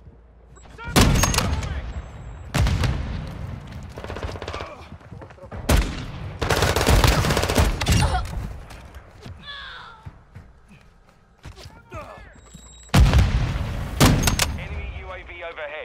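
Gunshots crack loudly and echo.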